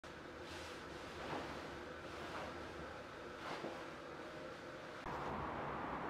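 A kettle hisses softly as water simmers.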